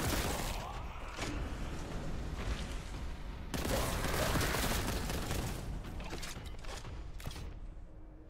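A shotgun fires in rapid blasts.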